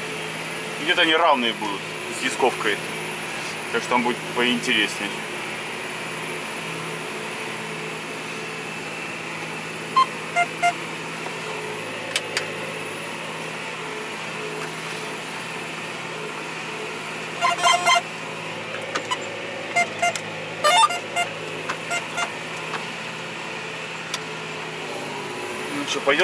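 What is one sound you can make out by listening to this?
A tractor engine hums steadily inside a closed cab.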